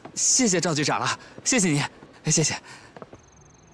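A young man speaks cheerfully, close by.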